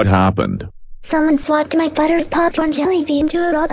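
A man speaks in a flat, synthetic voice.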